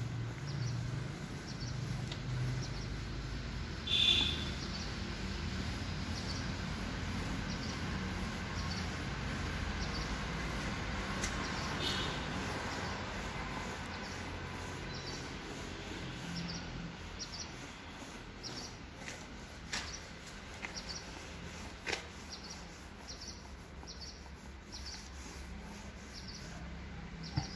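A paint roller rolls softly and stickily over a rough wall.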